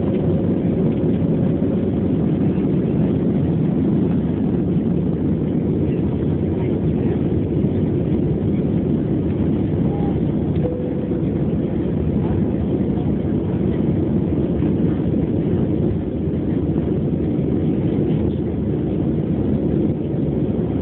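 Jet engines roar loudly and steadily, heard from inside an airliner cabin.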